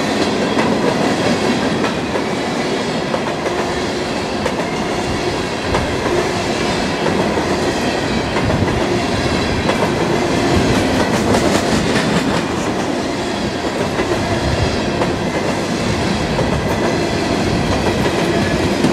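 Freight cars rumble steadily past on the rails, close by.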